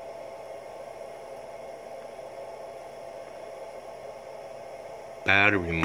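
An electrical inverter hums steadily and softly.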